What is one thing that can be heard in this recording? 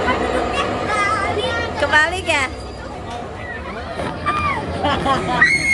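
A young girl squeals and laughs with excitement.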